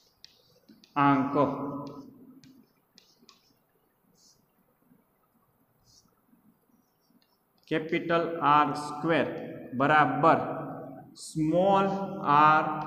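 A man speaks calmly and clearly, as if teaching.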